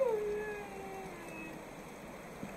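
A wolf howls with a long, falling cry.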